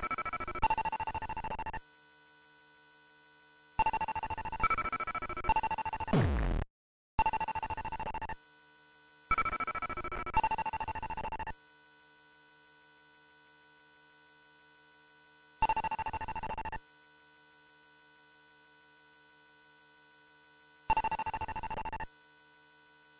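Electronic game tones beep in short bursts as a ball bounces.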